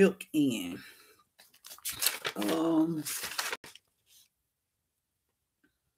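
Pages of a large book rustle as they are turned.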